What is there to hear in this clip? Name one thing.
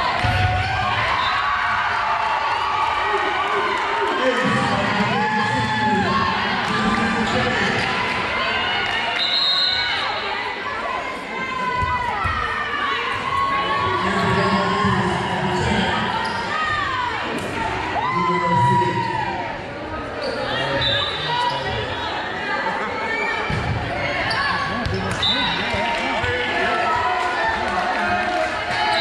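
Girls shout and call to each other across a large echoing gym.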